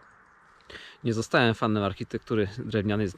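A man speaks calmly and close up, outdoors.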